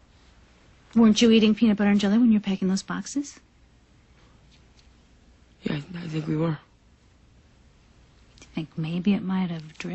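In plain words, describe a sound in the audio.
A woman speaks earnestly close by.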